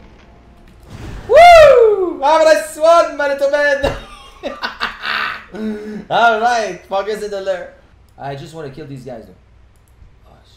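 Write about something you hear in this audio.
A young man shouts and laughs loudly into a close microphone.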